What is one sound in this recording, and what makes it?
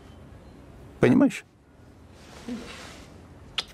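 An elderly man speaks briefly in a low voice, close by.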